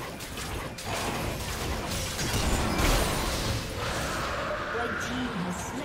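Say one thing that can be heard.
Fiery magic blasts boom and crackle.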